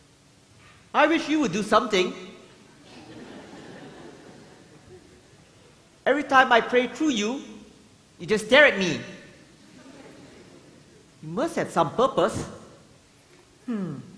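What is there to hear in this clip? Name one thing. A man speaks with feeling on a stage, his voice echoing in a large hall.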